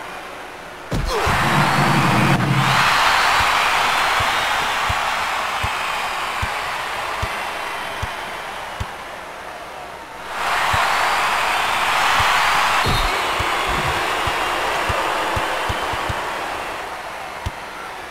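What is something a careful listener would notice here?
A crowd cheers loudly, then fades.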